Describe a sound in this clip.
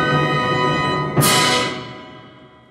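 An orchestra plays a loud final chord that cuts off sharply.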